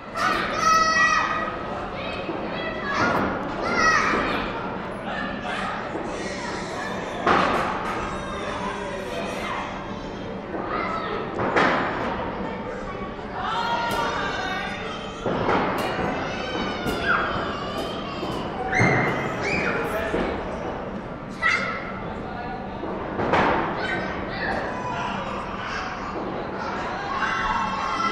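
Young children shout and chatter excitedly in a large echoing hall.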